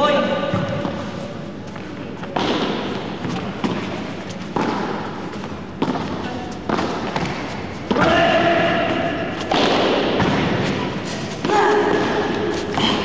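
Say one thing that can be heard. A ball is struck by rackets with sharp pops, echoing in a large hall.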